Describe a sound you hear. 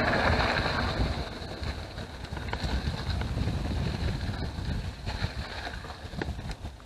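Bicycle tyres roll softly over packed dirt.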